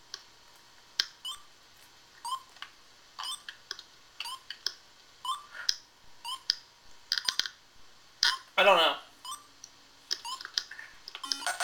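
An electronic game's timer beeps about once a second as it counts down.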